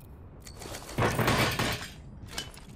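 A metal supply crate lid swings open with a loud whoosh.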